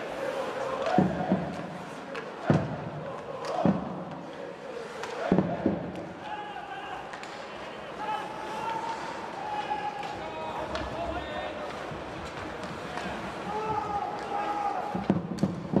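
Hockey sticks clack against a puck with sharp knocks in a large echoing arena.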